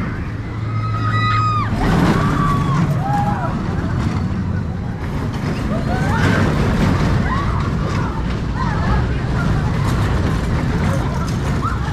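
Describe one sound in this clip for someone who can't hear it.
Riders on a roller coaster scream.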